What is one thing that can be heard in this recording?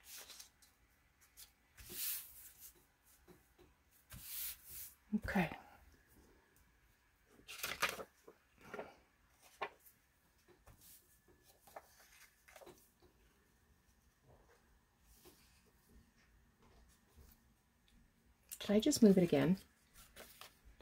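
Paper rustles and slides as hands handle sheets.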